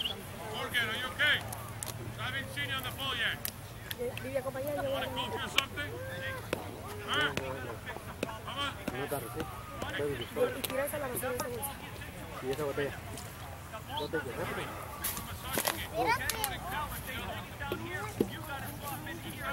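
Young women shout and call to each other across an open field in the distance.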